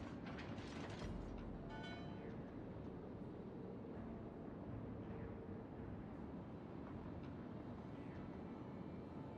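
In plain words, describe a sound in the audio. Sea water washes and splashes along a ship's hull.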